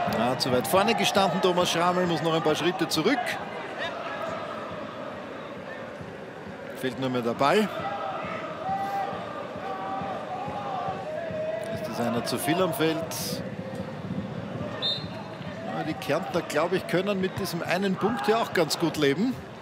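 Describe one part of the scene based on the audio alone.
A large stadium crowd chants and sings outdoors.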